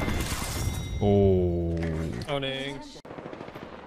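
A young man shouts excitedly into a microphone.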